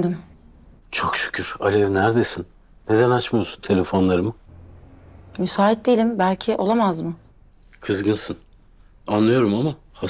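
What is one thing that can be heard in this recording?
A middle-aged man speaks firmly into a phone, close by.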